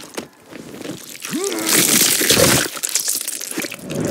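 Flesh squelches and tears wetly.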